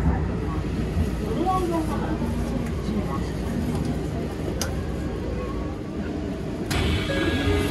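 A train rumbles inside while moving slowly.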